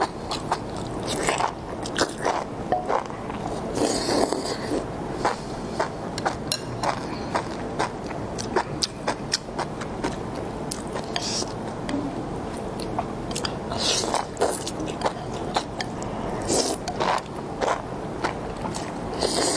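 A young woman slurps noodles loudly, close to the microphone.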